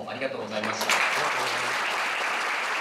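A young man speaks through a microphone in a large room.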